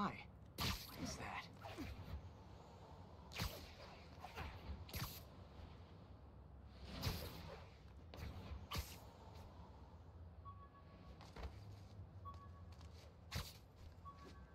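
Webs shoot out with sharp whooshing snaps.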